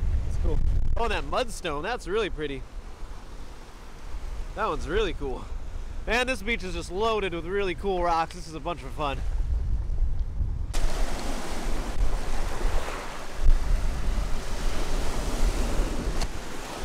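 Waves break and wash over a pebble shore.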